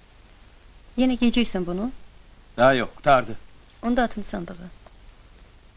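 A woman speaks in short phrases.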